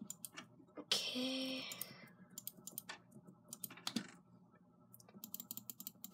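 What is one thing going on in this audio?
Computer keys click rapidly.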